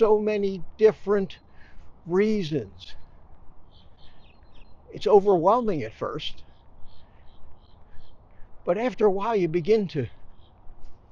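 An elderly man speaks close by, calmly and in short bursts, outdoors.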